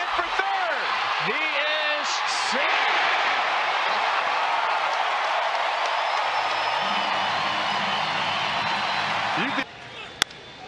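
A large crowd cheers and roars loudly in a stadium.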